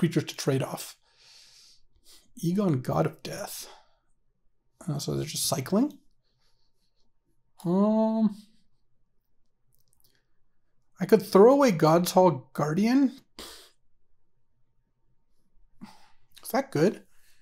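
A man speaks with animation into a close microphone, in short bursts with pauses.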